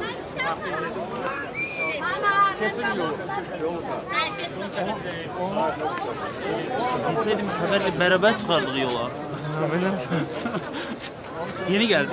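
A crowd of men and women chatter and call out loudly outdoors.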